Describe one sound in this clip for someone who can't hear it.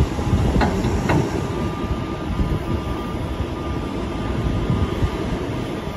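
Silage tears and crumbles as a loader's shear grab cuts into it.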